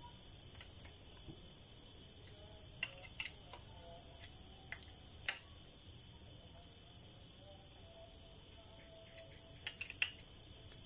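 Metal tools click and clink against a motorcycle engine part.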